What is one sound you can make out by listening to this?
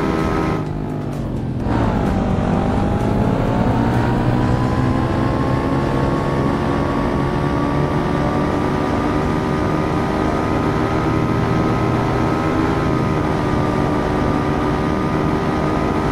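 A motorcycle engine drops in pitch, then revs up and roars steadily.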